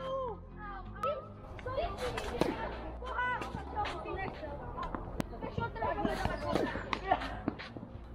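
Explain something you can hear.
A tennis ball is struck sharply with a racket, outdoors.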